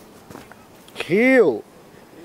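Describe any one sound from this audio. A young man lets out a loud, drawn-out groan.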